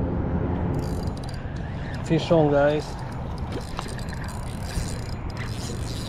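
Water splashes as a fish is lifted out.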